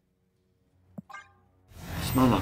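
A game sound effect clicks and chimes briefly.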